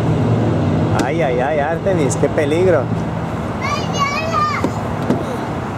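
A young girl calls out and chatters excitedly close by.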